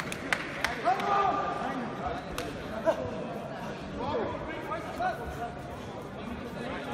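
Several people talk in the background of a large echoing hall.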